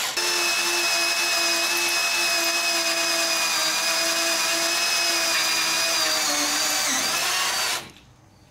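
A cordless drill whirs steadily as it bores into metal, slowing slightly near the end.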